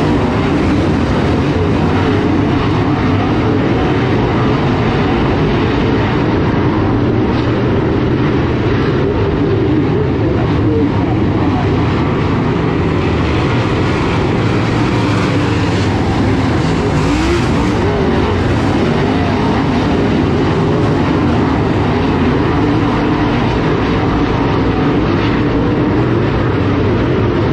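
Race car engines roar loudly as cars circle a dirt track.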